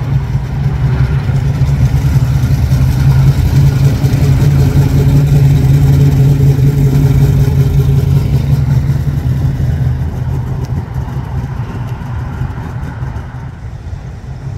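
A V8 muscle car rumbles as it drives past.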